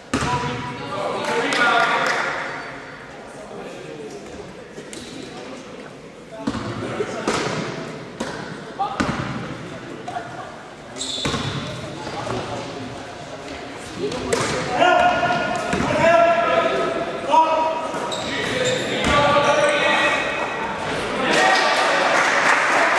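Men call out and shout during a game in an echoing hall.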